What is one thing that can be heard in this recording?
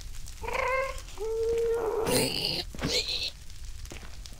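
A creature grunts and snorts in low, throaty bursts.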